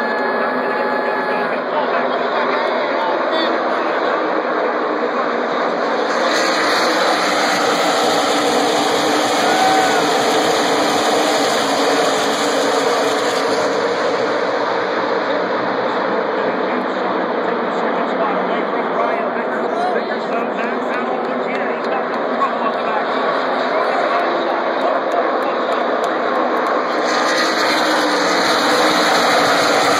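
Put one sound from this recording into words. A large crowd cheers and shouts in a big open stadium.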